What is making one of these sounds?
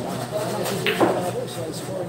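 A cue stick strikes a pool ball with a sharp click.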